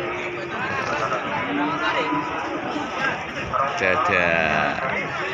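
Several men talk and call out nearby in a busy crowd.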